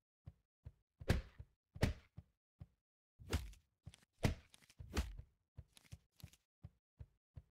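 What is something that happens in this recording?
Bursts of cash and coins jingle as money is picked up.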